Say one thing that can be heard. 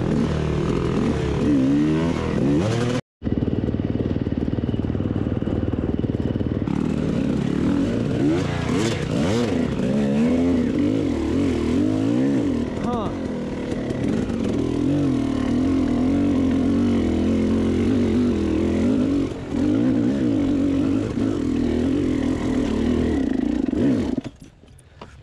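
A dirt bike engine revs up and down close by as it rides over rough ground.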